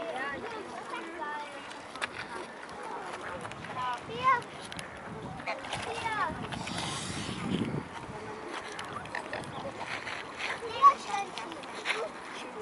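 Geese honk and call nearby.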